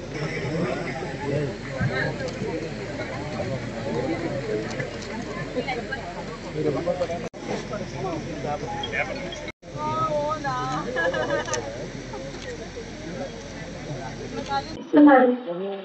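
A crowd murmurs in the background of a gathering.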